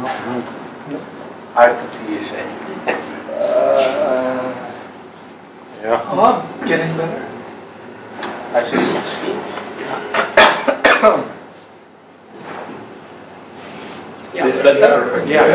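A man speaks calmly, as if giving a talk.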